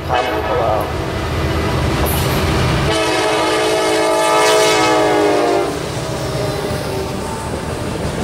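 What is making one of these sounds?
A diesel locomotive engine roars past close by.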